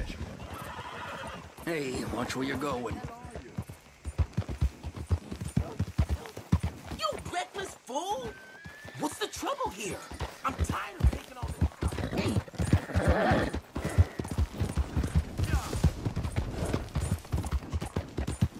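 A horse's hooves pound a dirt road at a gallop.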